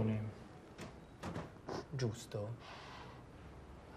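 A young woman sobs quietly.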